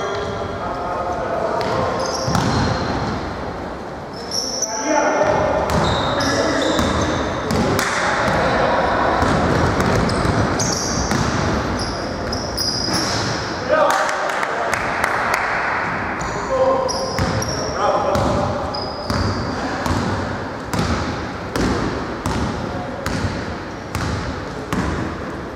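Sneakers squeak sharply on a hardwood court in a large echoing gym.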